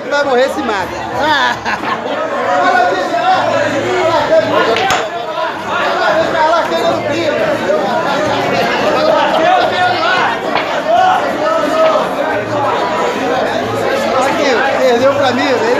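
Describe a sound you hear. A crowd of men talks and shouts loudly all around, close by.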